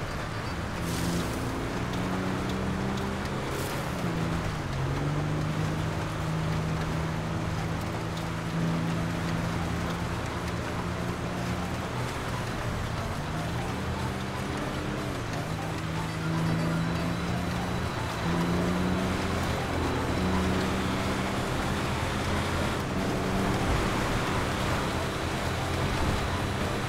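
Tyres crunch and hiss over snow.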